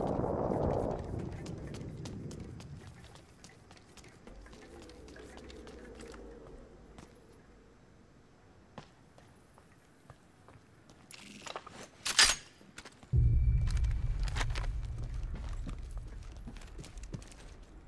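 Footsteps patter quickly as a game character runs.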